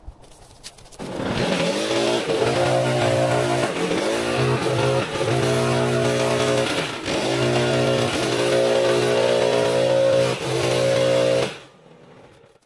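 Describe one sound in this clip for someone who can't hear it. A backpack leaf blower engine roars loudly, rising and falling.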